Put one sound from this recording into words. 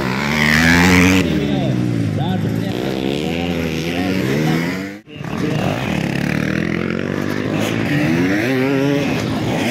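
Dirt bike engines rev and whine up and down nearby.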